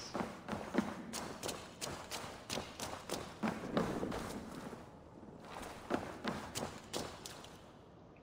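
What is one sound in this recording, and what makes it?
Footsteps scuff and tap on a stone floor in an echoing space.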